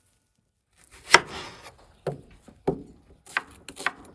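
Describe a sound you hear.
A knife chops through an onion onto a wooden board.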